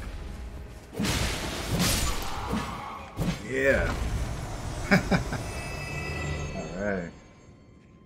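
A loud magical blast bursts with a rushing roar.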